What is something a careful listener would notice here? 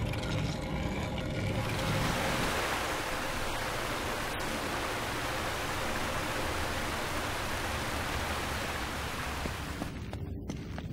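Water pours down steadily in a loud rushing stream.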